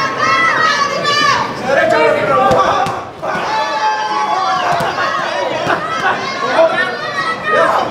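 Boxing gloves thud against a body.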